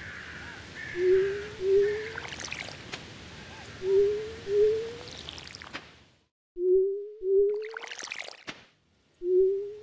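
Short rising electronic blips sound in quick pairs.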